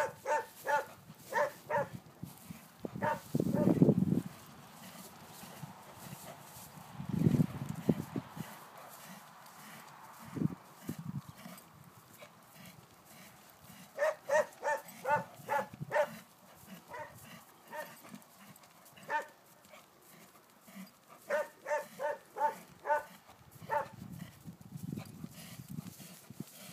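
Horse hooves thud on grass at a steady canter.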